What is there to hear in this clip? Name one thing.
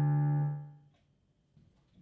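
A piano chord rings out and fades away.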